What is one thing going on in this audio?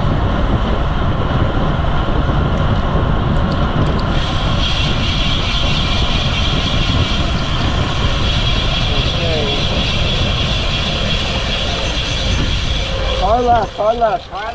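Wind rushes loudly past a moving bicycle, then dies down as it slows.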